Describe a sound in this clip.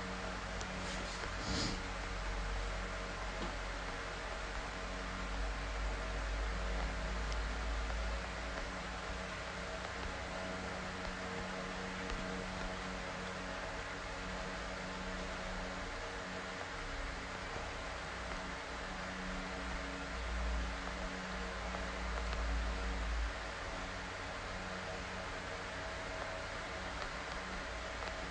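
A man speaks softly close to a microphone.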